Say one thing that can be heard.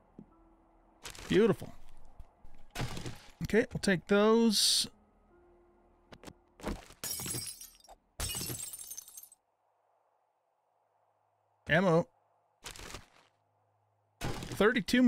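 An older man talks close to a microphone.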